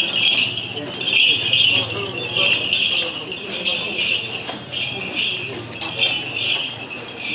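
Footsteps of a crowd shuffle along a street.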